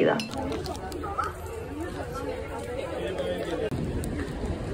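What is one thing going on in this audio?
People chatter in a crowd on a street.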